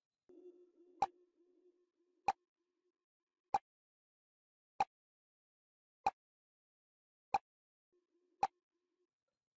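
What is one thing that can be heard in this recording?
A countdown timer ticks steadily.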